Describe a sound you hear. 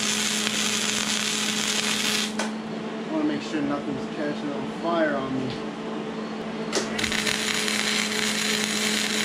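An arc welder crackles and sizzles loudly.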